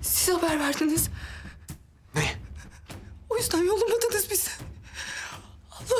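A young man speaks tensely in a low voice.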